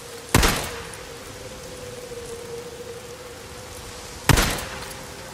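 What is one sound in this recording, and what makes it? A pistol fires two loud shots outdoors, each ringing out briefly.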